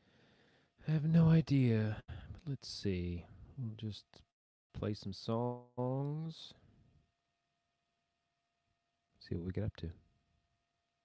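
A man talks calmly and close into a microphone, with pauses.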